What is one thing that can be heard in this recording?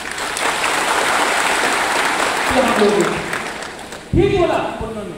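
A crowd cheers loudly in a large hall.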